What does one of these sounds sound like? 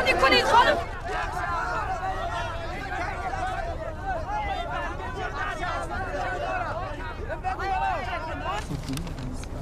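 A crowd of men shouts excitedly close by.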